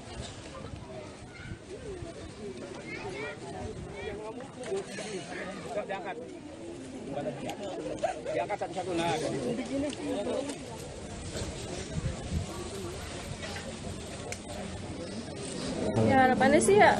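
A crowd murmurs and prays softly outdoors.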